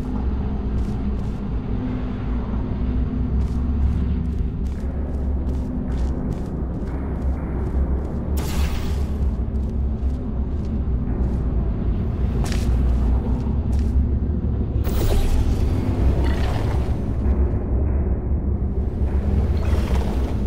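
Air rushes past in a steady, loud roar.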